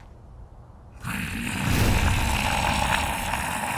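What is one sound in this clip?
A large winged creature roars loudly.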